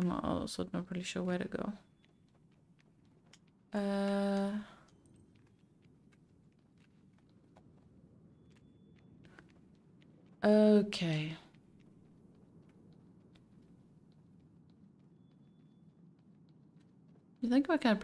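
A young woman speaks close to a microphone in short bursts, with pauses between.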